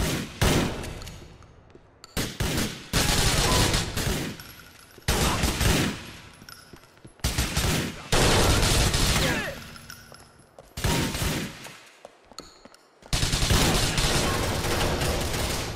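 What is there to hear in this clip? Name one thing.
Gunshots fire in loud bursts, echoing in a large hall.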